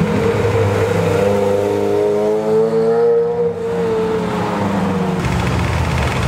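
A Ferrari V8 sports car revs and accelerates away close by.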